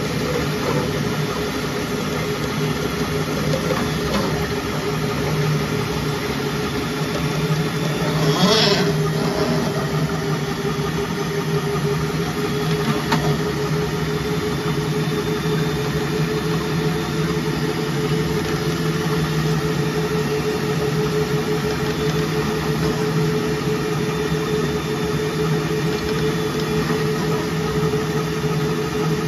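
Water churns and gurgles steadily as a drain-cleaning cable spins in a pipe.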